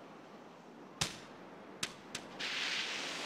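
A golf ball thuds and bounces on grass.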